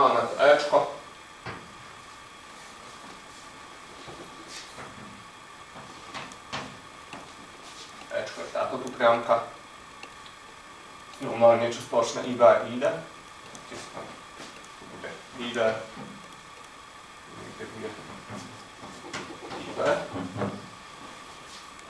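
A young man speaks calmly, explaining.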